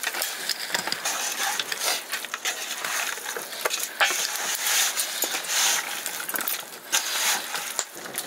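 Hands squelch and slap through wet marinated meat in a metal pot.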